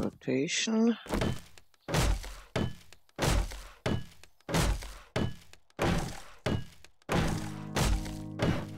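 A hammer strikes wood in quick, repeated knocks.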